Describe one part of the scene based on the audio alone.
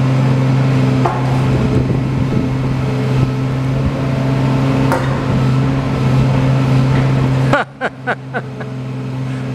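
Metal clanks and knocks from an excavator bucket.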